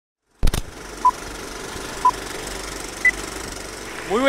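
A film countdown beeps once every second.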